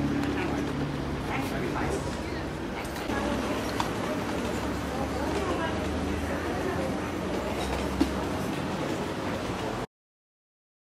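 A group of men and women chat faintly nearby outdoors.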